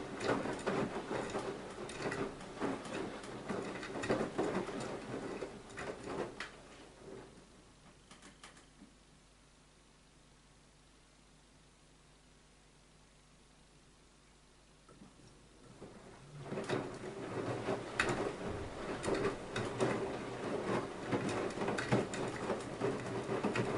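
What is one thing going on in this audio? Water sloshes and laundry thumps inside a turning washing machine drum.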